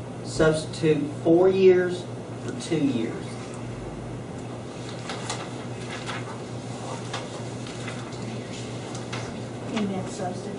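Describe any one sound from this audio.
A man speaks calmly at a distance in a room with some echo.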